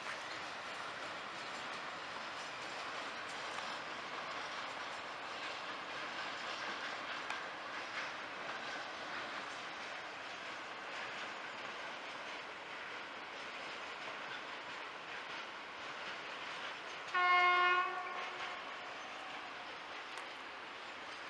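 A freight train rumbles along the tracks.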